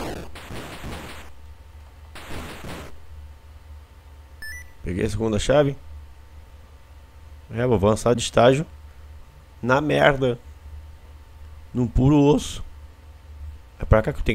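Electronic game sounds chirp in short bursts.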